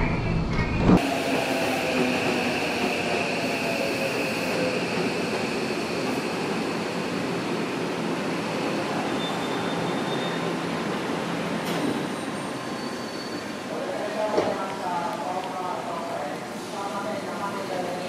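A train rolls in with a high whine and slows to a stop.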